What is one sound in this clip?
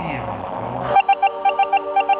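Electronic game music pulses with a steady beat.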